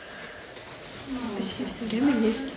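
A young woman talks to the listener up close, in a lively voice.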